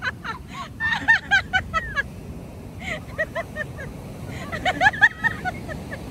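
Waves wash up onto the beach with a steady rushing.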